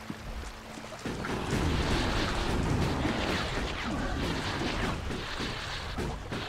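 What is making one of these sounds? A river rushes and churns nearby.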